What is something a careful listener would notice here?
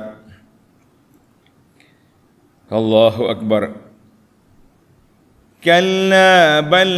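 An elderly man speaks slowly into a microphone, in phrases with long pauses between them.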